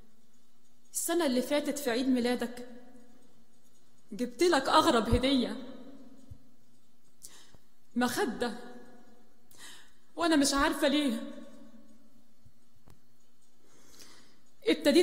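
A woman speaks slowly and solemnly into a microphone, with pauses, in a reverberant hall.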